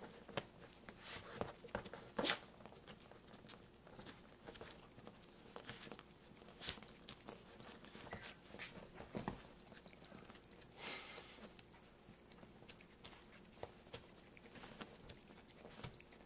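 A small dog chews and gnaws on a soft toy up close, with wet clicks and smacks.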